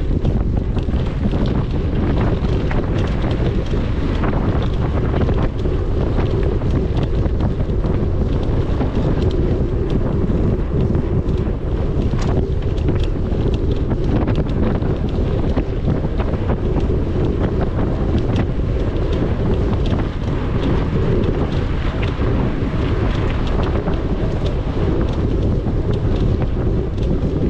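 Wind rumbles loudly over a microphone outdoors.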